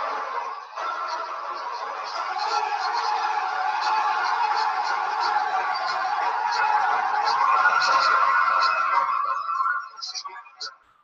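A man speaks through an online call.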